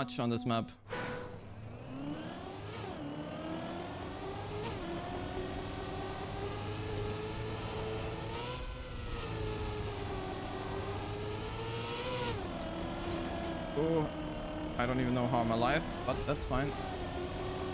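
A racing car engine whines steadily, rising and falling in pitch.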